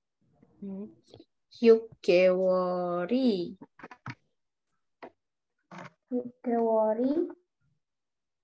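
A woman speaks slowly and clearly over an online call, drawing out her words.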